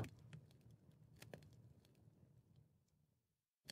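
A fire crackles softly in a furnace.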